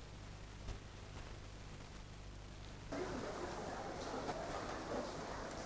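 Bricks and rubble clatter as a man shifts them.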